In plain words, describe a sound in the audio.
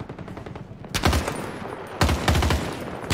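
A rifle fires a few loud shots.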